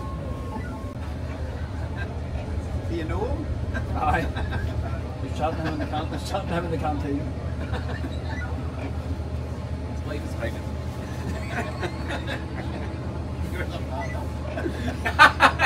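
A heavy truck engine rumbles low and steadily.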